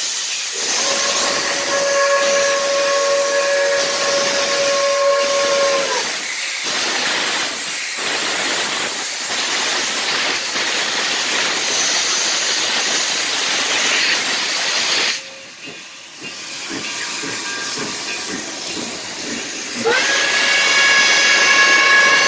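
A steam locomotive's whistle blows loudly in long blasts.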